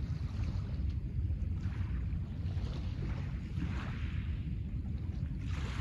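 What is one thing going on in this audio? Small waves lap softly against a pebble shore.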